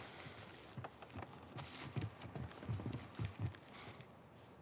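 Footsteps crunch over debris on a wooden floor.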